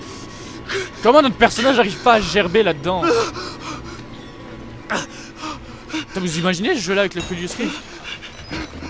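A young man talks with animation, close to a headset microphone.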